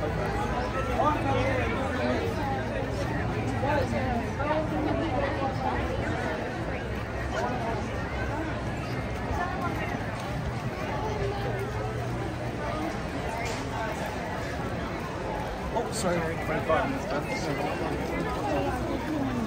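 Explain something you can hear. A large crowd of men and women chatter all around outdoors.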